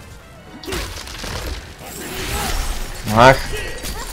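Ice shatters with a bright crash.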